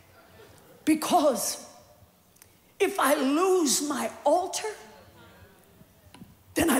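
A woman speaks with feeling through a microphone in a large hall.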